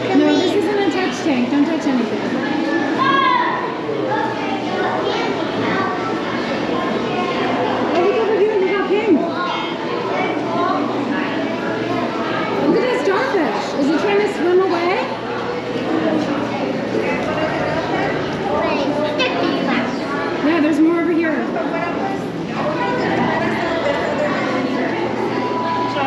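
A crowd of adults and children chatters nearby in an echoing indoor hall.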